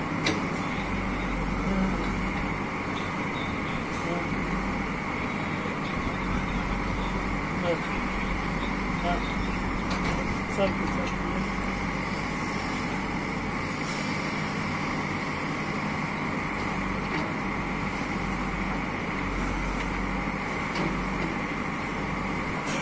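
A backhoe bucket scrapes and knocks against soil.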